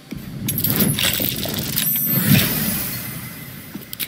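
A die rattles as it rolls.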